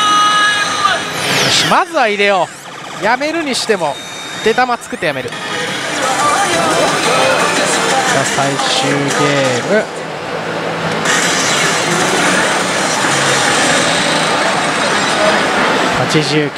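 A slot machine plays loud electronic music and jingles.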